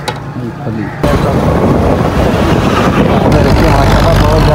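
Trucks and motorbikes roll past on a road.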